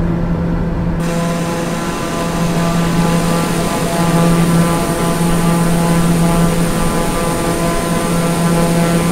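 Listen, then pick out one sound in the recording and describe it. A propeller engine hums loudly and steadily from outside the aircraft.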